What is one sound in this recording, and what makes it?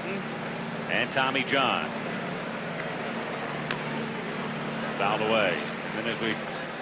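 A crowd murmurs in a large outdoor stadium.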